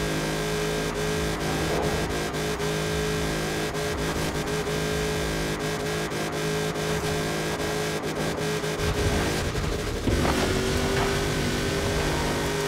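A high-revving engine roars steadily at speed.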